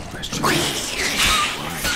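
Creatures snarl and growl close by.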